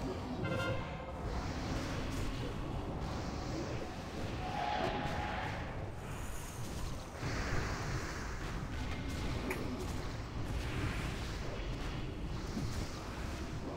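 Magic spells crackle and whoosh during a fight.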